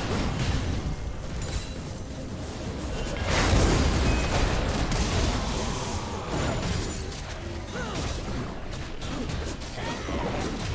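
Game spell effects whoosh and crackle in quick bursts.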